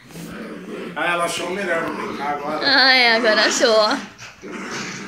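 Small dogs growl and snarl playfully.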